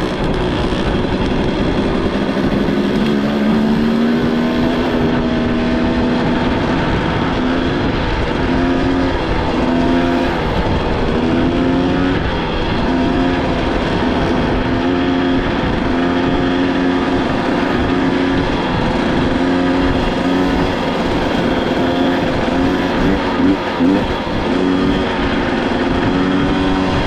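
Tyres crunch steadily over loose gravel.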